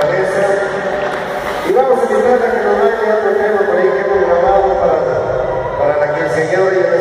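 A man sings through a microphone.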